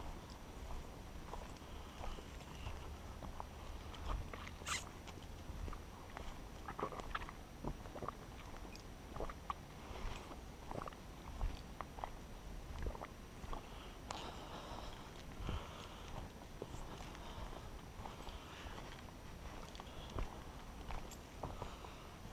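Bike tyres crunch and rattle over a dirt trail.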